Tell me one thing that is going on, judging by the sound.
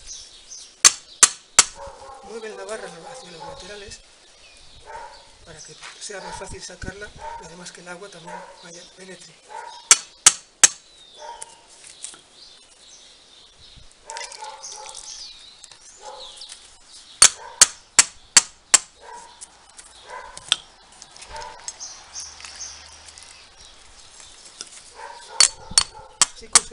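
A hammer strikes a metal rod driven into the soil.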